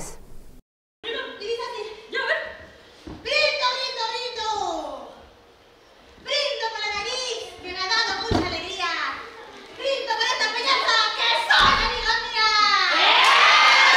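Women on a stage talk and shout with animation, heard through a loudspeaker in a large hall.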